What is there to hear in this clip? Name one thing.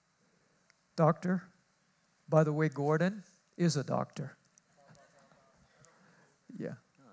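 An older man speaks slowly through a microphone in a large room.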